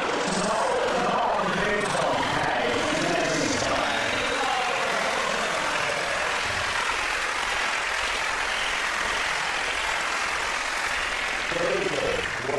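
A studio audience laughs and applauds loudly.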